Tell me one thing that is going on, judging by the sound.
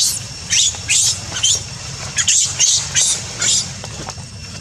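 A monkey squeals in rapid high bursts.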